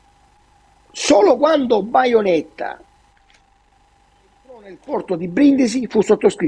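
An elderly man speaks with animation over an online call.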